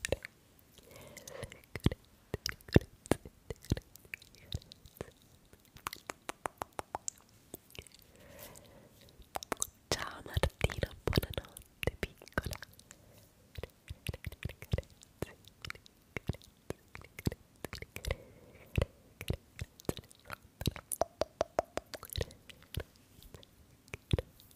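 A young woman whispers softly, close to a microphone.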